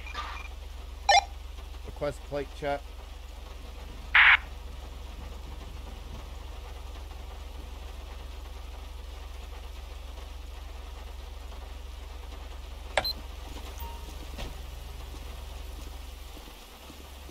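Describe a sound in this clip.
A car engine idles steadily.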